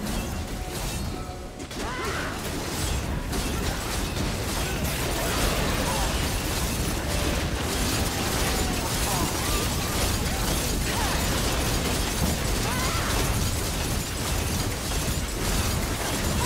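Game spell effects crackle and burst in a dense fight.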